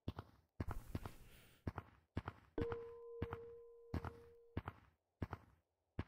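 Hands grab ladder rungs with short, regular knocks.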